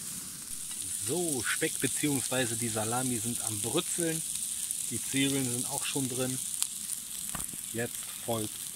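A man talks calmly close to a microphone, outdoors.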